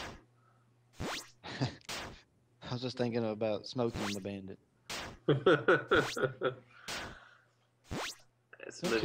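Short, sharp retro game hit sounds strike now and then.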